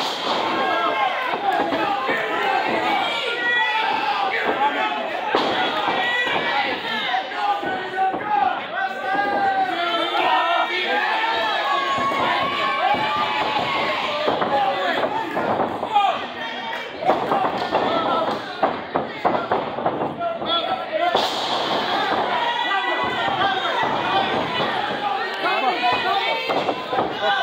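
A crowd of spectators shouts and cheers loudly nearby, in a large echoing hall.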